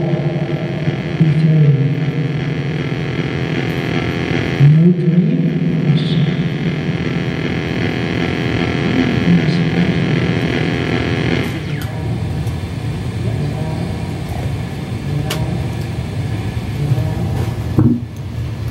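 A fan whirs steadily close by.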